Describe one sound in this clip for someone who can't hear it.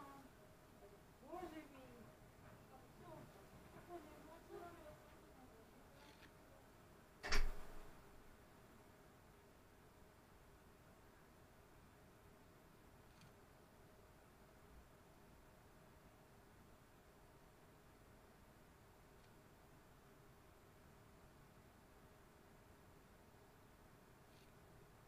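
A paintbrush dabs and scrapes softly on paper.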